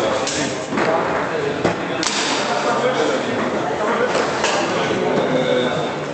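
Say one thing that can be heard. Foosball rods rattle as they spin and slide.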